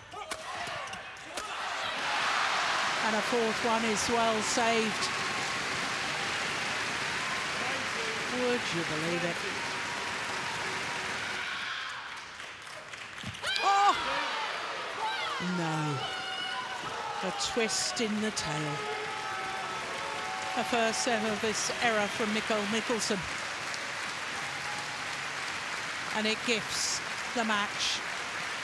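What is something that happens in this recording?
A large indoor crowd murmurs and cheers in an echoing hall.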